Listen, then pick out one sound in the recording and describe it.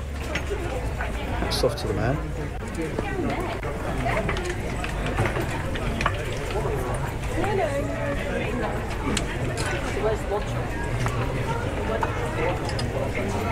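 Many people chatter and walk in a busy street outdoors.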